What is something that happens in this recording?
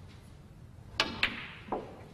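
A cue strikes a snooker ball with a sharp tap.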